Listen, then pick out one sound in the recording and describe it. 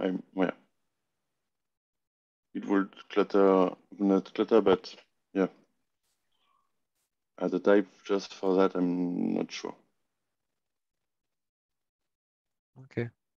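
A man speaks calmly into a nearby microphone, in short bursts with pauses.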